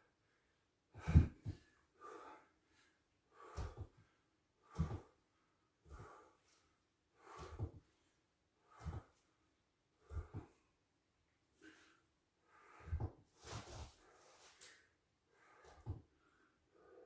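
Legs and arms thump softly on a wooden floor.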